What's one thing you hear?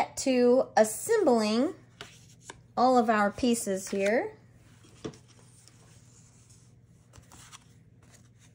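Paper cards slide and tap softly on a tabletop.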